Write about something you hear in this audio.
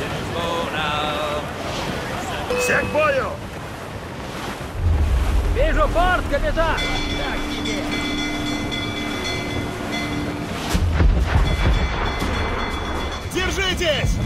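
Wind blows through a sailing ship's rigging.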